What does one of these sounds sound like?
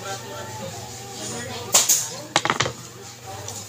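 Wooden sticks knock against each other.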